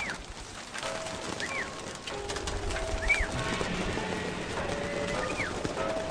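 Pigeons flap their wings as they take off.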